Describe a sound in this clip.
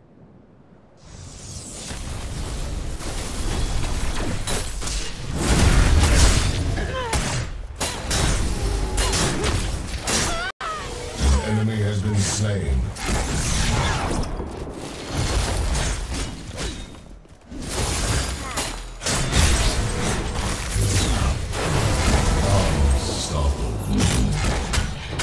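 Magic blasts and ice spells crash and crackle in a fast video game fight.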